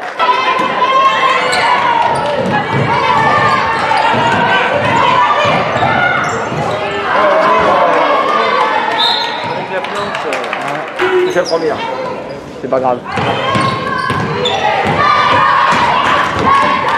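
Young women shout to each other across an echoing hall.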